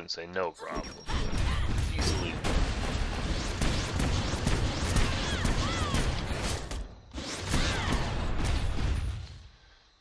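Magic spells crackle and boom in rapid, rumbling bursts.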